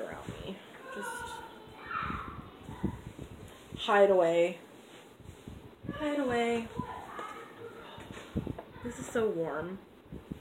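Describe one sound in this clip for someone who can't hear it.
Yarn fabric rustles as it is handled.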